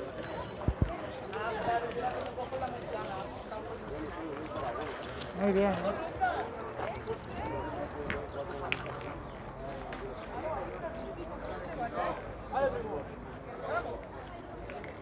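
Several young men talk and call out to each other nearby outdoors.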